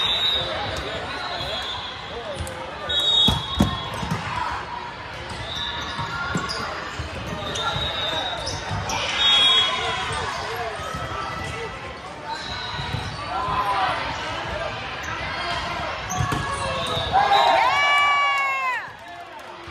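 A crowd of spectators chatters and cheers throughout.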